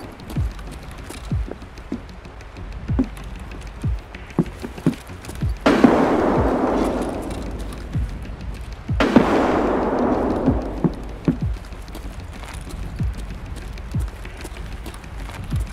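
Footsteps thud steadily across a hard floor.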